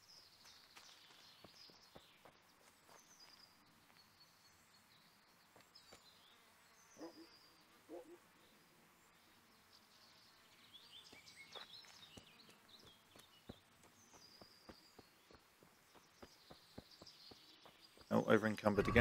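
Footsteps crunch steadily on a forest path.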